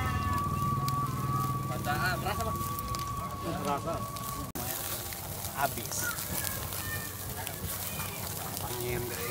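Skewered meat sizzles over a charcoal fire.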